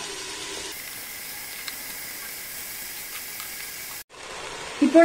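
Dry rice grains pour and patter into a metal pot.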